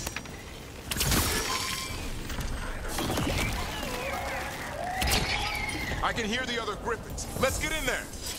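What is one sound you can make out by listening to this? Magic blasts burst with a loud whoosh.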